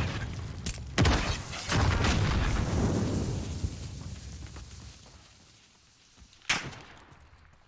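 A gun fires single sharp shots.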